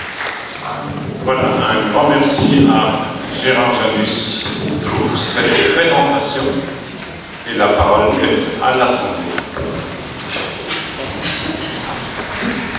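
An elderly man speaks calmly into a microphone in a large, echoing hall.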